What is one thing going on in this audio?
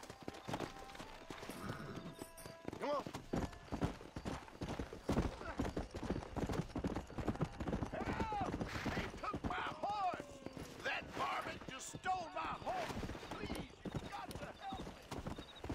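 A horse gallops, its hooves thudding quickly on the ground.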